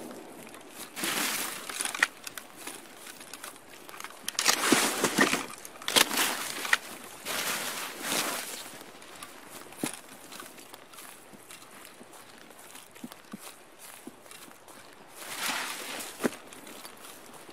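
Leaves and branches rustle as someone pushes through bushes.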